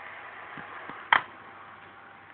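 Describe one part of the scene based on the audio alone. A plastic case clicks open.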